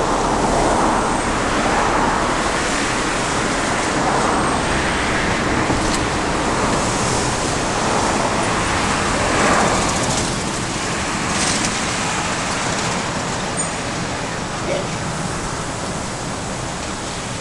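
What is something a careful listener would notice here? Traffic drones steadily on a city road below.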